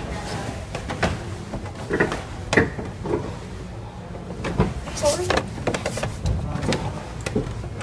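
Bare footsteps creak and thump on wooden boards.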